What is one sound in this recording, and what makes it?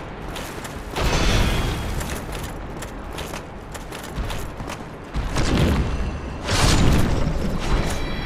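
A huge creature thuds heavily on stone.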